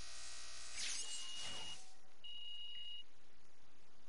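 A short electronic chime rings twice.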